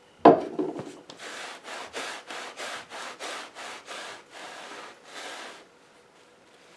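A cloth rubs back and forth over metal in quick strokes.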